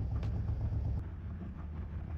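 A car door clicks open.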